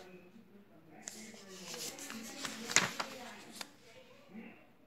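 A paper page is turned over.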